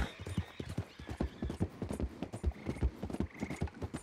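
Hooves of a horse clatter on wooden planks.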